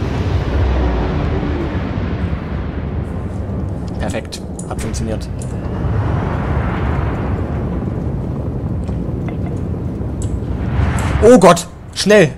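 A spaceship engine rumbles low and steadily.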